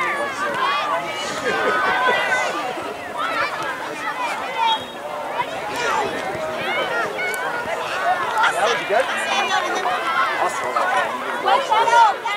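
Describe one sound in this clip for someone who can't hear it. Many children and adults shout and cheer outdoors, nearby and far off.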